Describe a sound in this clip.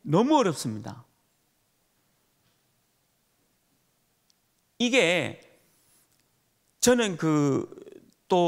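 A middle-aged man speaks with animation into a microphone, in short bursts with pauses.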